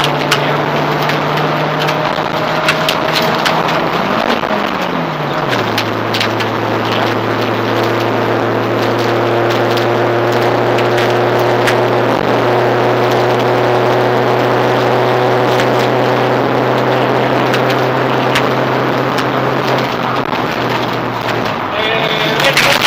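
A rally car engine roars loudly from inside the cabin, shifting gears.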